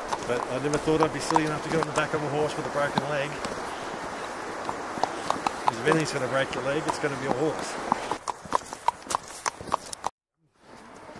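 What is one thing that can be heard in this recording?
A horse's hooves crunch on snow at a steady walk.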